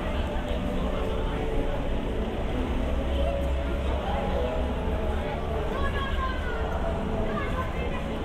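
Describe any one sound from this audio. Adults and a child chat nearby in murmuring voices.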